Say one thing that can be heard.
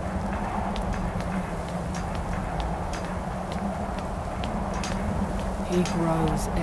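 Footsteps climb stone stairs at a steady pace.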